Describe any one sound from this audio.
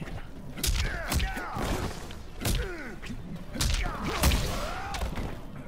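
Lightning crackles and zaps.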